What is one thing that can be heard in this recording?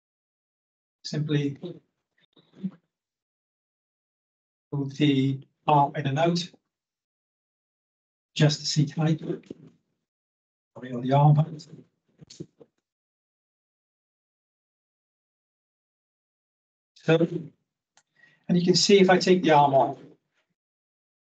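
A middle-aged man speaks calmly in bursts, heard through a microphone on an online call.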